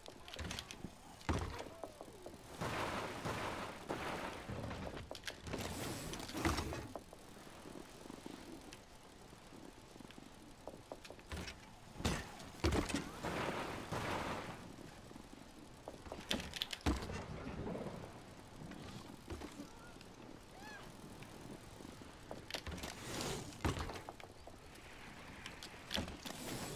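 Bicycle tyres roll and skid over dirt.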